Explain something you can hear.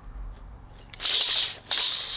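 A pencil scratches across a wooden board.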